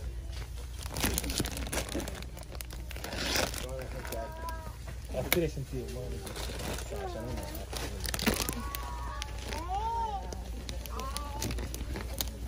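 A plastic wrapper crinkles as it is handled.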